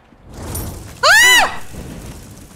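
A creature screeches loudly in a high, bending wail.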